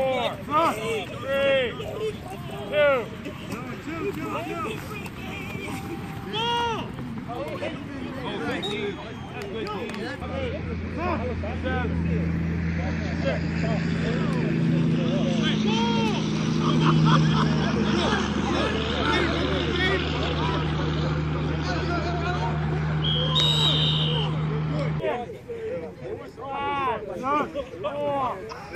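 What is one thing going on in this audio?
Young men shout and call out across an open field outdoors.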